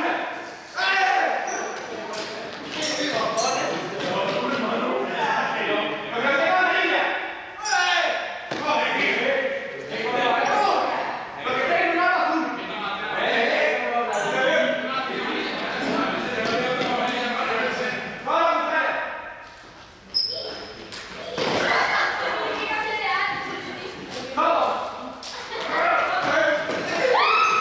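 Young people chatter and call out loudly in a large echoing hall.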